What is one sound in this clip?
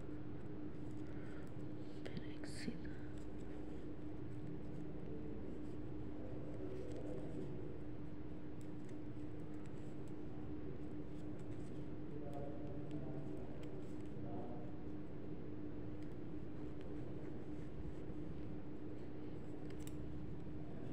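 Knitting needles click and tick softly against each other.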